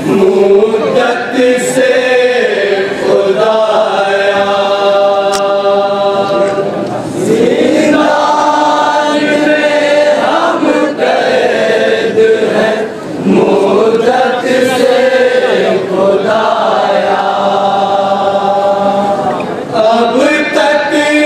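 A young man leads the chant, singing loudly into a microphone.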